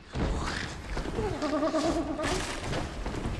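A creature snarls and growls loudly.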